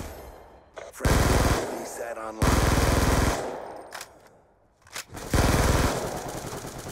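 Rapid gunfire bursts out loudly in short volleys.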